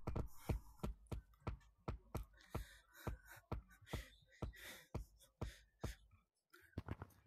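Hands grab and knock against rock in quick, regular thuds.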